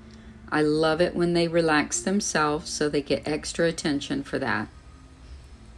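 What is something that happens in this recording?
A woman speaks calmly close by.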